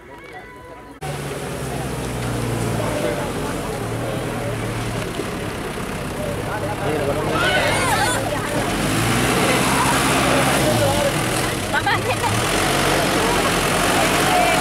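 A crowd of men talk and call out loudly outdoors.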